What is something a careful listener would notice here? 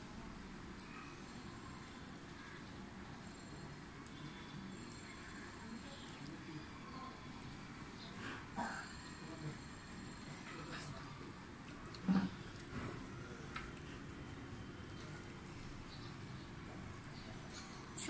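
A woman mixes rice and food with her fingers, with soft squishing sounds.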